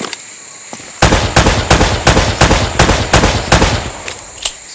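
A pistol fires a rapid series of loud shots.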